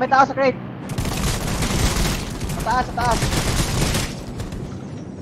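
Rifle shots ring out in a quick burst.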